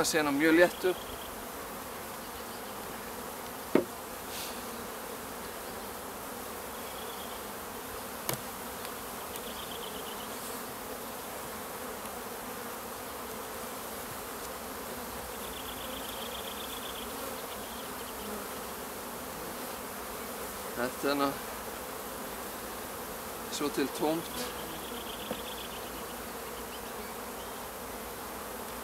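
Bees buzz around an open hive.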